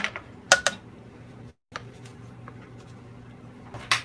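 Flour pours softly into a plastic measuring cup.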